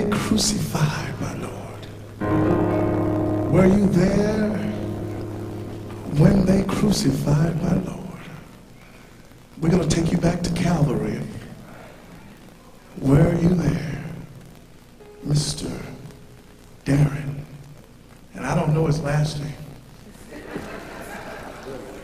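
A man sings into a microphone with feeling.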